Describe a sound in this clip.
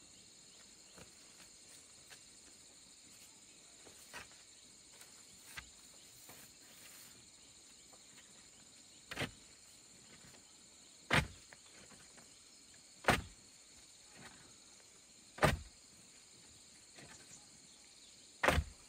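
A wooden pole thuds into the soil again and again.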